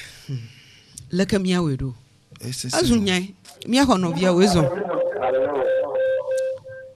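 A middle-aged woman speaks with animation into a close microphone.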